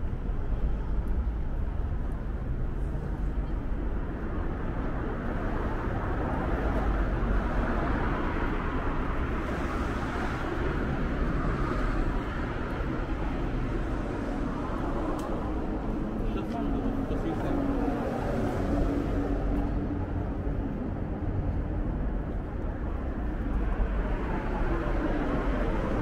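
Footsteps tread on a pavement outdoors.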